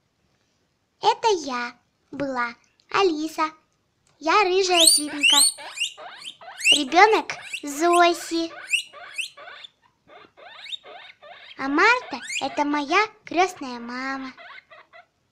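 A guinea pig squeaks and chirps close by.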